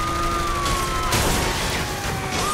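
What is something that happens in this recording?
Gunshots crack in a short burst.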